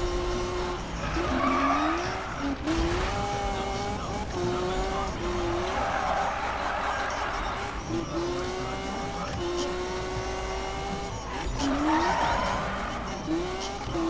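Tyres screech while the car drifts.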